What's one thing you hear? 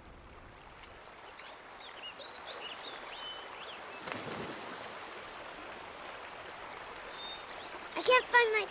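Water trickles over rocks in a shallow stream.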